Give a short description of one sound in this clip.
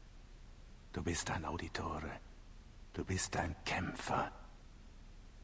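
A man speaks gently, close by.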